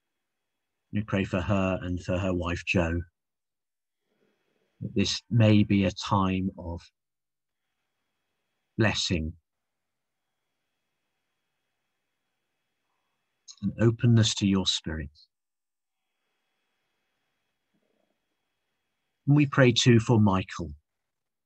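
A man reads out slowly and calmly over an online call, with long pauses.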